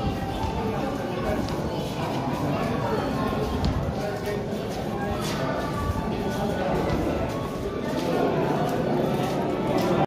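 Footsteps shuffle along a path, echoing in a tunnel.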